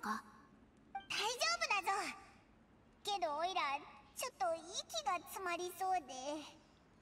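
A girl speaks in a high, lively voice.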